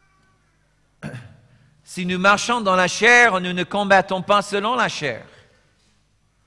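A middle-aged man speaks calmly into a headset microphone.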